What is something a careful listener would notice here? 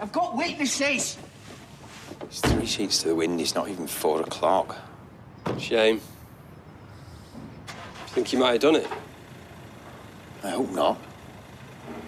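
A middle-aged man speaks firmly and close by.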